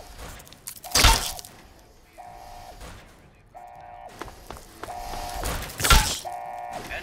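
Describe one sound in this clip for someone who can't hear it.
A wooden bat thuds hard against a creature.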